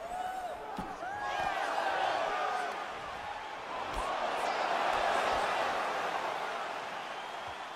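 A crowd roars and cheers loudly, then dies down.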